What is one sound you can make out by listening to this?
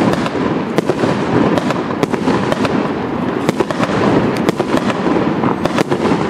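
A fireworks cake launches shells in quick succession with sharp thumps.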